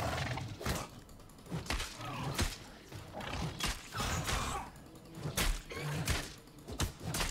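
Weapons strike with sharp metallic hits in a fight.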